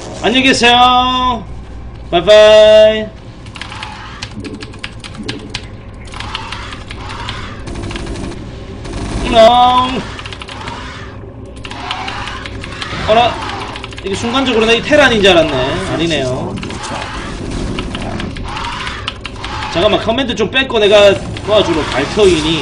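Fingers type fast on a mechanical keyboard, with rapid clacking keys.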